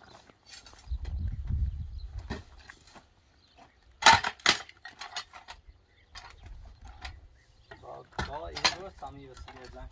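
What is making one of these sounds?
A shovel scrapes and clanks against concrete and stone.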